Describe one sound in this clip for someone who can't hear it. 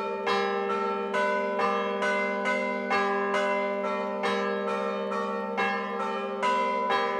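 Large church bells ring out in a quick, steady rhythm of loud clanging strikes that hum on between blows.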